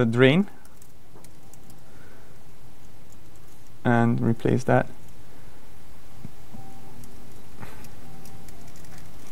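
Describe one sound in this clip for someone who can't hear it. Keys clatter as a man types on a laptop keyboard.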